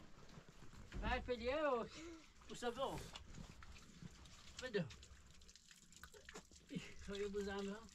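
Water pours from a jug and splashes onto the ground.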